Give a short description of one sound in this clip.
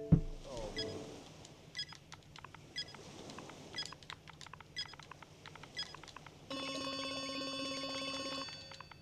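Short electronic menu blips tick repeatedly.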